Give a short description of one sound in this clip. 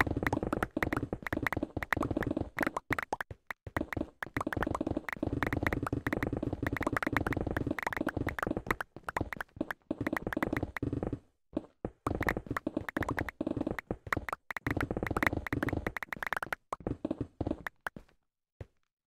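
Blocks of stone and earth crumble and break in quick succession in a video game.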